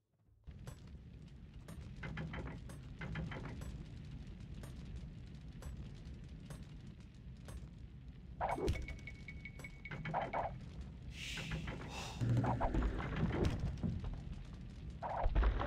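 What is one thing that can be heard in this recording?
Axes chop wood in slow, regular strokes.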